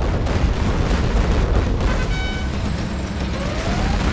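Explosions burst with deep rumbling blasts.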